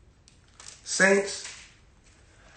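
A young man speaks briefly up close.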